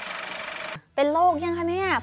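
A woman speaks brightly into a microphone.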